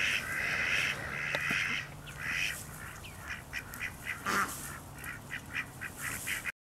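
A dog rolls and rustles in dry grass.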